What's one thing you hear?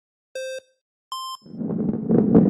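Two electronic countdown beeps sound, the second one higher.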